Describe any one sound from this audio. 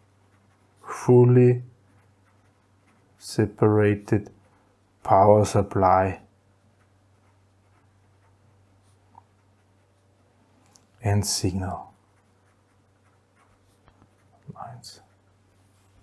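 A man speaks calmly and slowly into a close microphone, in short phrases with pauses.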